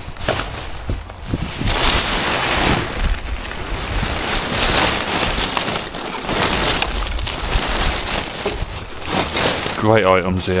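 Plastic bags rustle and crinkle as rubbish is rummaged through.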